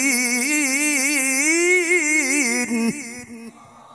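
A middle-aged man chants in a long, wavering melodic voice through a microphone and loudspeakers, then falls silent.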